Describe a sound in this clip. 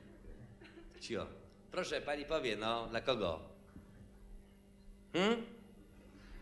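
A young man sings expressively into a microphone.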